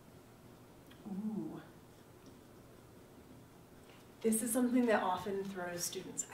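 A woman speaks with emphasis, close by.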